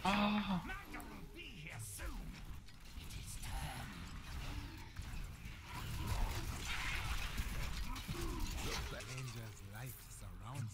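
Monsters growl and shriek as they are struck.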